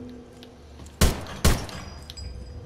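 A gun fires two loud shots.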